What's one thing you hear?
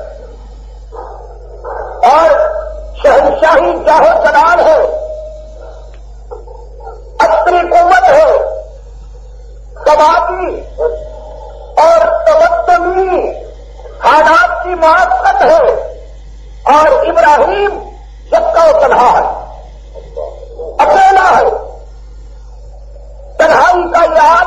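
A middle-aged man speaks calmly and slowly into a close microphone, in short phrases with pauses.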